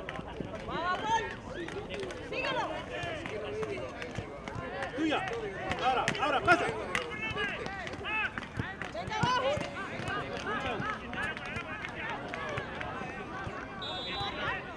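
Young players shout and call out across an open pitch.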